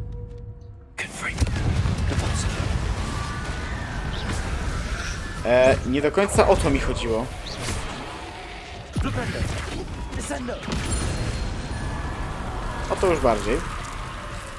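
Magic spells crackle and burst in loud blasts.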